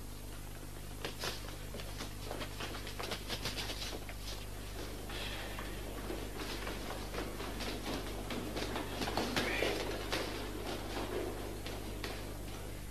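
Footsteps clatter quickly down a stairwell.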